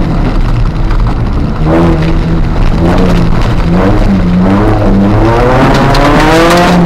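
A car engine roars loudly, revving up and down through the gears.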